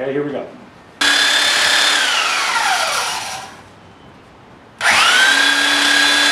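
A belt sander whirs loudly, winds down and then starts up again.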